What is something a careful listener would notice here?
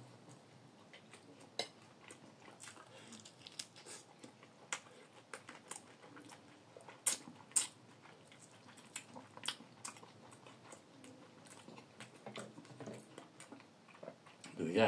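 A fork clinks and scrapes against a plate.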